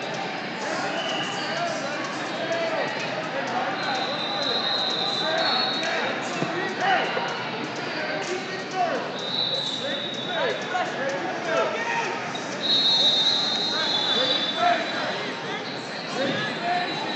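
A large crowd chatters and murmurs in an echoing hall.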